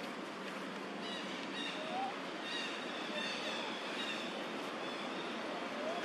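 A baby monkey squeaks in short high cries.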